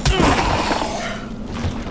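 A heavy blow lands on a body with a wet crunch.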